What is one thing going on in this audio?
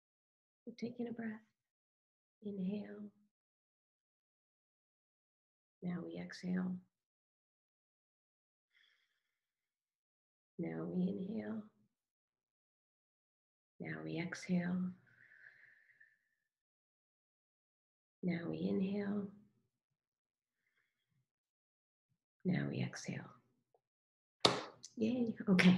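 A woman speaks calmly and slowly over an online call, with long pauses.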